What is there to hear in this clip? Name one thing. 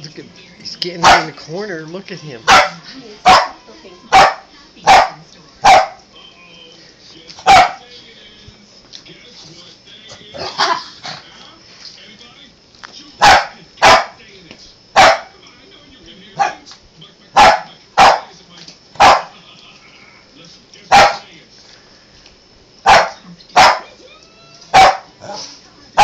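Small dogs bark sharply, close by.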